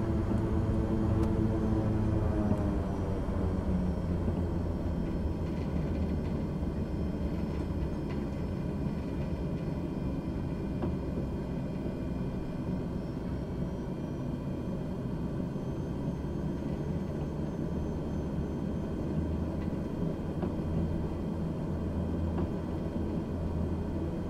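Aircraft wheels rumble over the ground.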